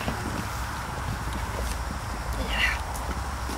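A woman rustles flower wrapping.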